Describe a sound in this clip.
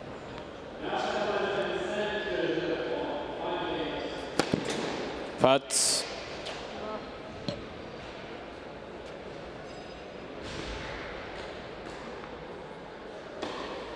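A tennis player bounces a ball on a hard court.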